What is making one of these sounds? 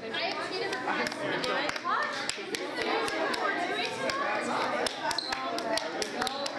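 Hands clap together repeatedly.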